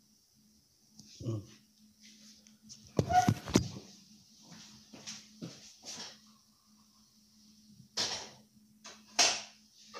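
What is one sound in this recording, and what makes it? A phone rustles and knocks as it is handled.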